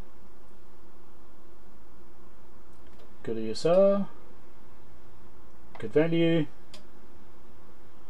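A finger presses a button on an electronic meter with a soft click.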